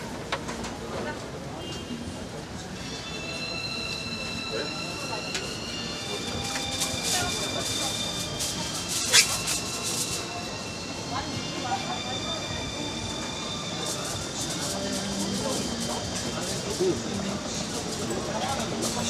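A wooden spatula scrapes and taps against a metal grill tray.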